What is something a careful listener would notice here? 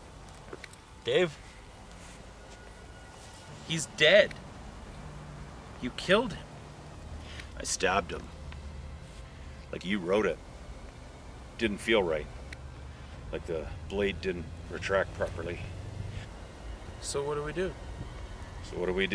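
A man speaks calmly in short phrases, close by.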